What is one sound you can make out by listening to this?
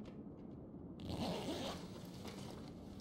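Objects rustle and clatter as a bag is searched.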